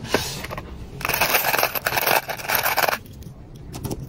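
Metal whistles and key rings jangle and clink as a hand rummages through them.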